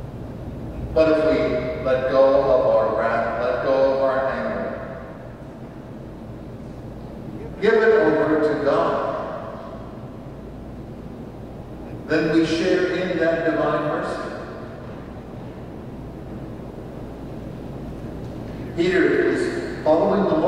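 An elderly man speaks slowly and calmly through a microphone, in pauses, in a room with a slight echo.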